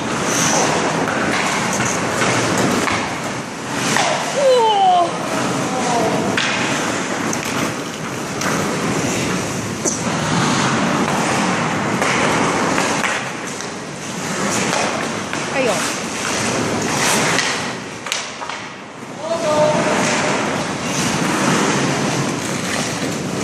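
Hockey sticks clack against the puck and the ice.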